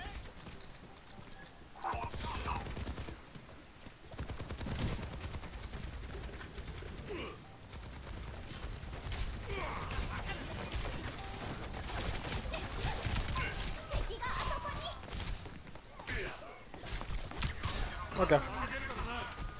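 Gunfire from a game crackles in quick bursts.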